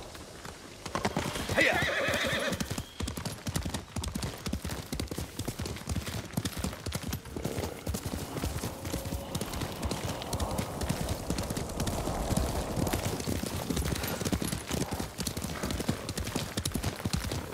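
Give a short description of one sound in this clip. Horse hooves gallop quickly over a dirt path.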